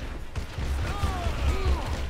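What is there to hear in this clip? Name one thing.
Pistol shots fire in a game.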